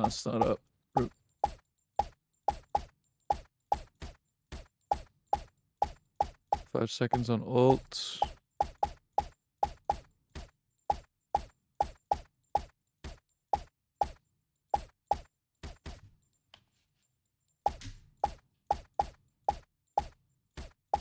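A suppressed pistol fires in quick repeated shots.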